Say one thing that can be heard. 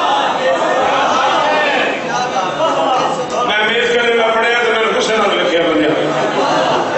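A man speaks passionately into a microphone, his voice loud through a loudspeaker in an echoing hall.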